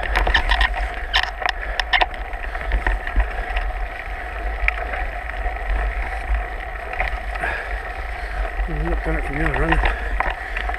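A mountain bike rattles and clatters over bumps.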